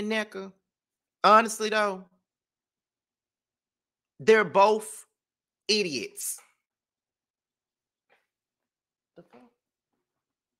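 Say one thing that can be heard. A young man speaks with animation into a close microphone, in short bursts with pauses.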